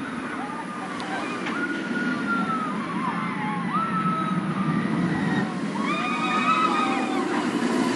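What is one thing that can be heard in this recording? A roller coaster train roars and rumbles along its track.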